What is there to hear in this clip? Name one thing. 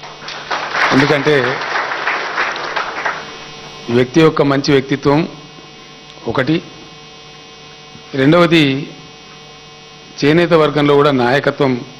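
An elderly man speaks through a microphone and loudspeakers in short, emphatic phrases.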